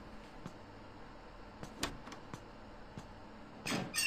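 A heavy door opens.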